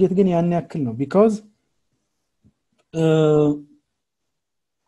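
A man speaks calmly through a computer microphone on an online call.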